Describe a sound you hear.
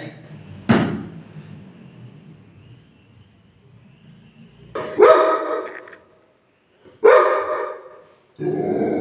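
A dog barks loudly close by.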